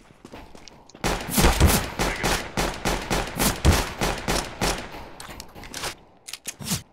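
A pistol fires rapid, sharp shots.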